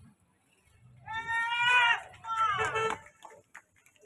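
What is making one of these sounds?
A group of men cheer and shout together outdoors.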